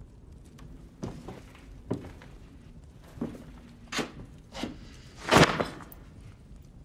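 A middle-aged man speaks in a low, measured voice nearby.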